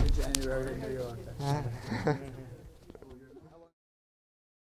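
Men talk and laugh nearby.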